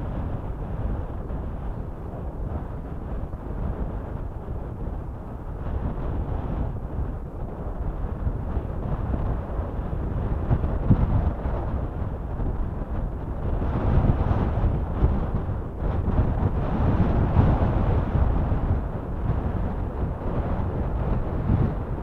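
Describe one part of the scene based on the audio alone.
Fast water rushes and churns along the shore.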